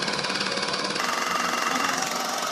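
An air compressor motor drones steadily.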